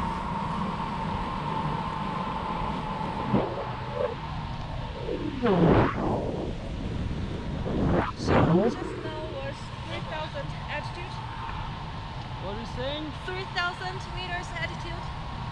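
Wind rushes steadily past a microphone outdoors.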